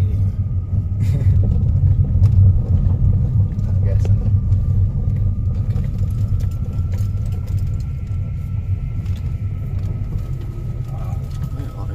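Tyres crunch and rumble on a gravel road.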